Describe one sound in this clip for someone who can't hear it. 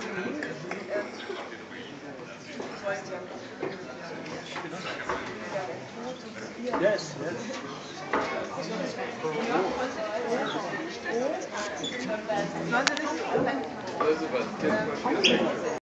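A crowd of people chatter loudly nearby.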